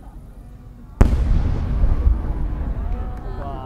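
A firework bursts with a loud, deep boom outdoors.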